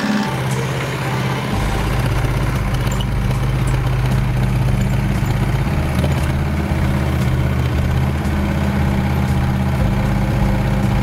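A small excavator's diesel engine hums steadily close by.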